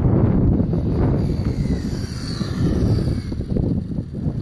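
An electric RC car whines past at high speed.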